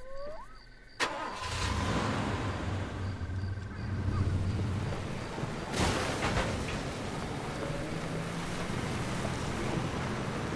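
A car engine starts and rumbles steadily.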